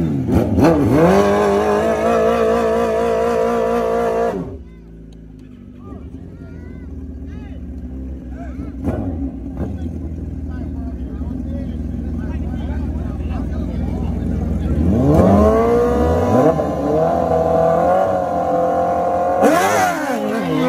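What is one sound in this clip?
A motorcycle engine revs loudly and roars at high pitch.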